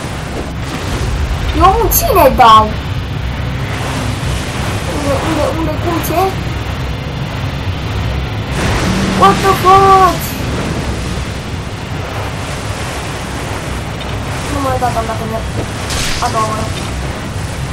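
Water splashes heavily as a huge creature surges from a lake.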